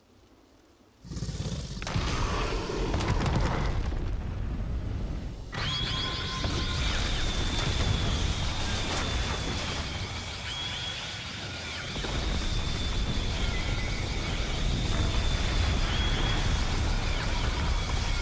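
A powerful blast of wind roars and rumbles.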